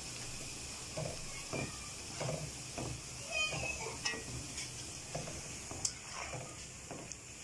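A metal spoon scrapes and clinks against the pan.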